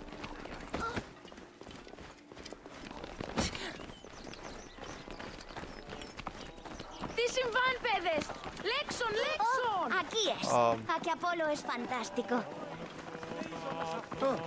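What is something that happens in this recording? Footsteps run over stone paving.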